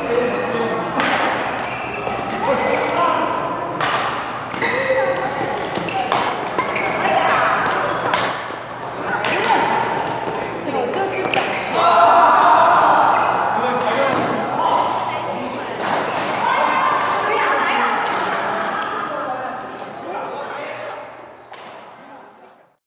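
Men and women call out and talk loudly across an echoing hall.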